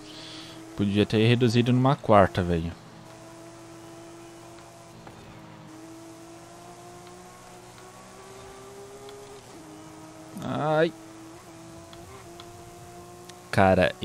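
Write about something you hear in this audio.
A car engine drones steadily and slowly climbs in pitch.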